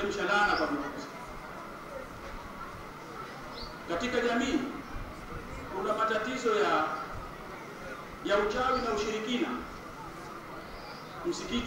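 A man speaks calmly in short phrases with pauses, heard through a microphone in a room with a slight echo.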